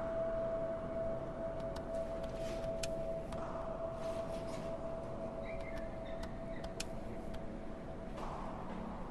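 A small television plays a faint, steady drone.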